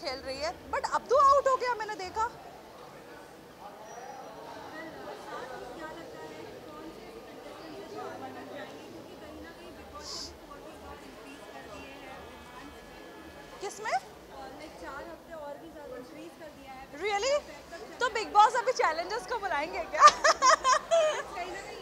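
A young woman speaks with animation into microphones close by.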